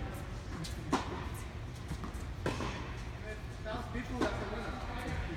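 Tennis balls are struck with rackets, with sharp pops echoing in a large indoor hall.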